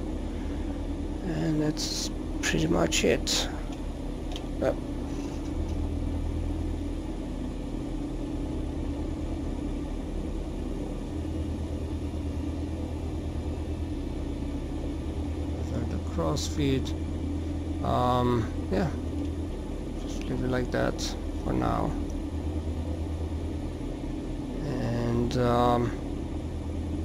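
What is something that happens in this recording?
An aircraft engine idles with a steady low drone.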